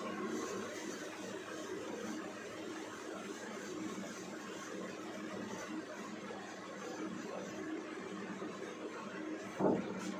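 A duster rubs and squeaks across a whiteboard.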